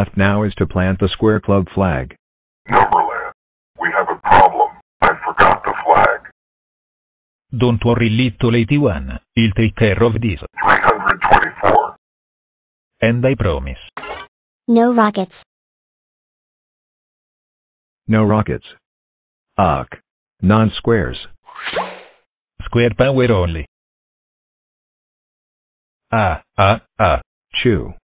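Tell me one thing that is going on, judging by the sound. Cartoon characters speak with animation in lively voices.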